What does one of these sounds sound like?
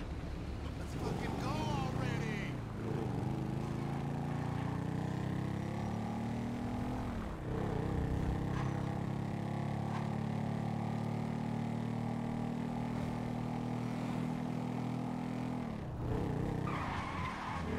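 A motorcycle engine starts up and revs as the bike speeds away, its pitch rising and falling with each gear change.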